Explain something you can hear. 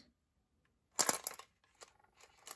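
Small metal pieces clatter and rattle out of a toy dispenser.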